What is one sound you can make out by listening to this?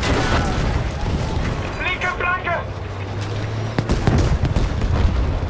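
Battle noise rumbles low and steady.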